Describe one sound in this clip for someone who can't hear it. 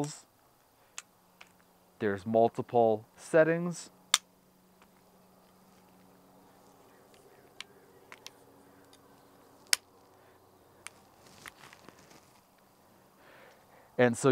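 Metal parts click as a tripod and a pole are set up.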